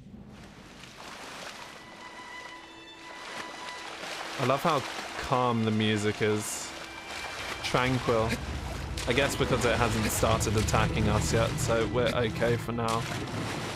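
Water splashes as a figure swims.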